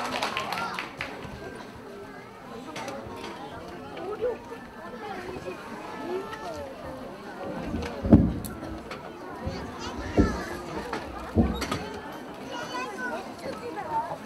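A crowd of people murmurs and chatters quietly.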